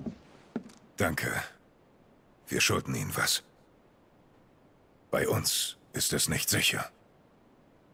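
A man speaks in a deep, gruff voice, calmly and close.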